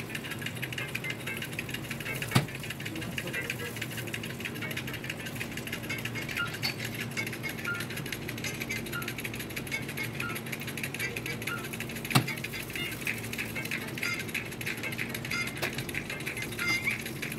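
A roasting chicken sizzles and crackles.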